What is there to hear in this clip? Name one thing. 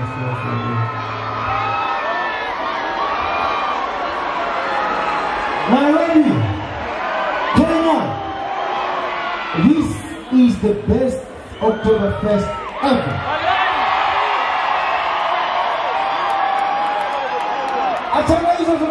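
A large crowd cheers and screams outdoors.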